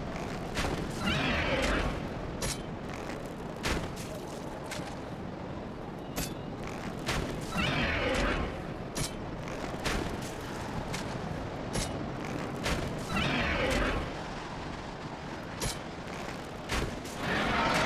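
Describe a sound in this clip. A heavy sword swings through the air with a whoosh.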